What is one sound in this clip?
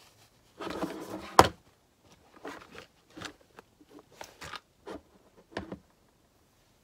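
Small plastic makeup cases click and rattle on a table.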